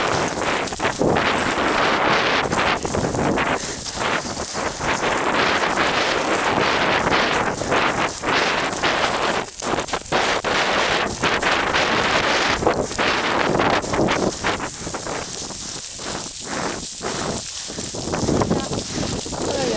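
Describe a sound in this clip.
Wind blows hard across an open slope.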